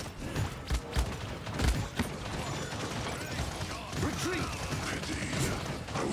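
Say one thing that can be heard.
Magic blasts and impacts crackle in a video game.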